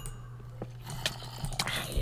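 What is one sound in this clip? A zombie groans.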